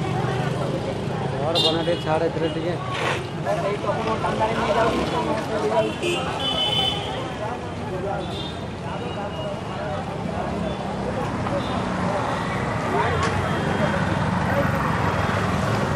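A motorbike engine passes by.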